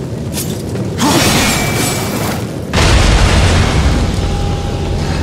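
Flames roar and crackle nearby.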